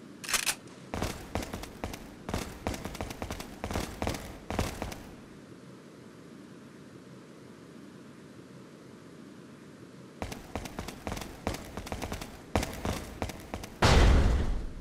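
Footsteps crunch over debris on a hard floor.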